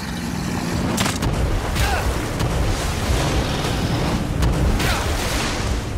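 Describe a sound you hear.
A heavy blow thuds and slams into the ground.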